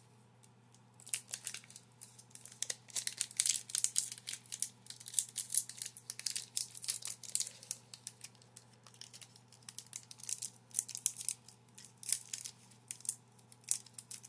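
A foil wrapper crinkles and tears.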